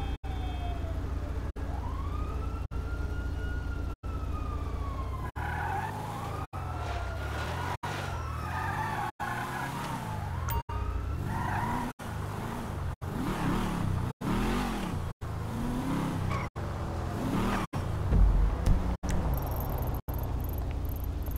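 A car engine roars and revs as the car drives.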